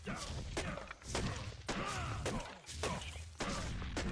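A fist punches a tree trunk with dull thuds.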